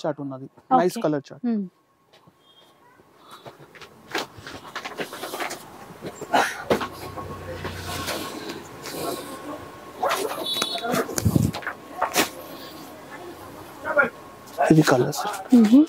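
Silk fabric rustles as cloth is laid down and smoothed.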